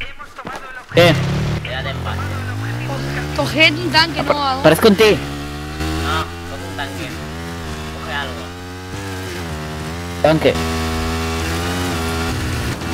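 A motorcycle engine roars and revs up and down.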